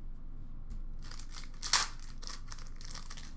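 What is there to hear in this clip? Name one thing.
Plastic wrappers rustle and crinkle as they are handled.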